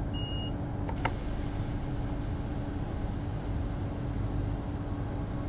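A train's motors whine rising as the train starts to move.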